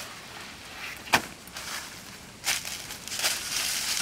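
A bag drops onto dry leaves.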